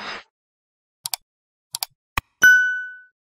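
A mouse clicks several times.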